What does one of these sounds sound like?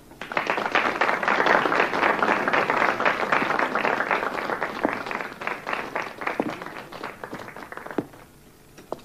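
An audience applauds loudly, and the clapping fades out.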